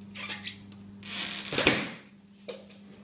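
A balloon bursts with a loud pop.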